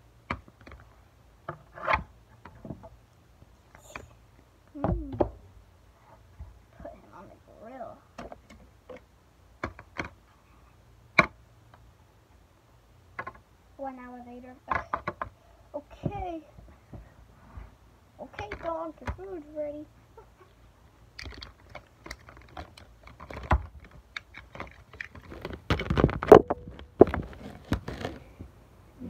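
Plastic toys knock and clatter on a tray.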